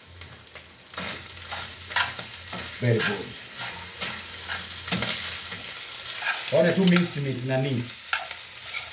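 Food sizzles in a frying pan.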